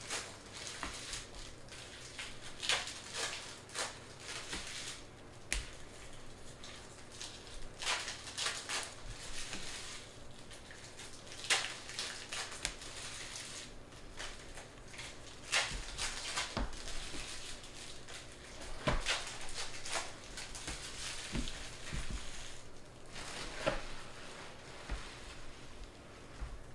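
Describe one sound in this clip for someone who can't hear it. Trading cards rustle and click as they are handled and set down.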